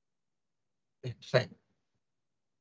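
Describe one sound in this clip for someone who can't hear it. A young man speaks a few words briefly into a microphone.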